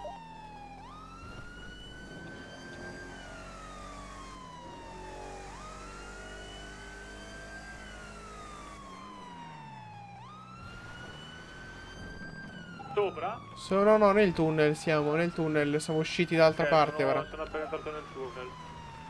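A siren wails, rising and falling slowly over and over.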